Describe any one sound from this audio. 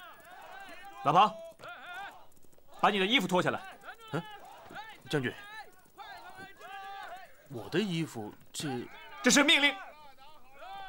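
A young man speaks firmly and loudly, close by.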